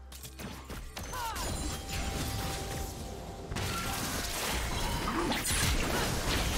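Fantasy combat sounds of spells whooshing and blasts crackling ring out.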